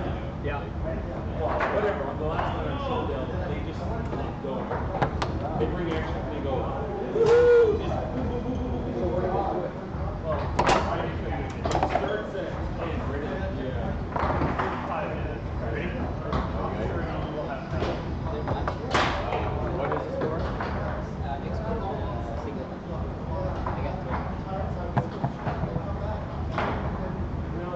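A ball knocks sharply against the rods and walls of a foosball table.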